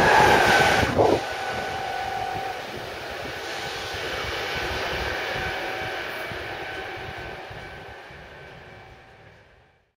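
A train hums as it pulls away and slowly fades into the distance.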